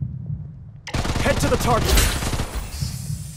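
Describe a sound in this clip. Gunshots crack in a quick burst.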